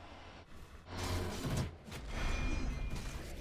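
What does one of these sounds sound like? Magic spells and blows clash in a noisy fight.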